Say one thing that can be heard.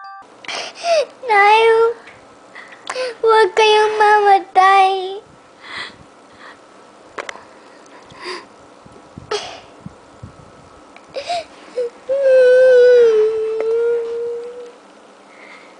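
A young girl sobs and wails close by.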